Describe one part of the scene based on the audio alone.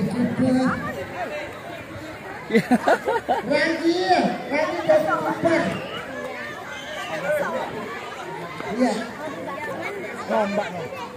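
Children and women shout and chatter excitedly outdoors.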